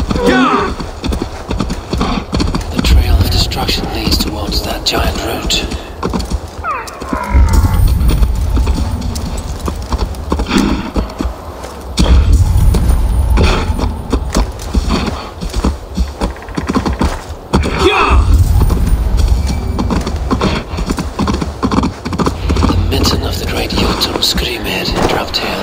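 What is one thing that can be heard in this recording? Hooves thud steadily on snowy ground.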